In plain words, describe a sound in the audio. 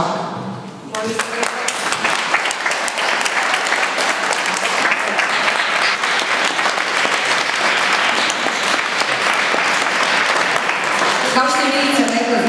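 A crowd applauds and claps loudly.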